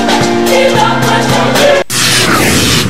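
A group of women sing together through a microphone.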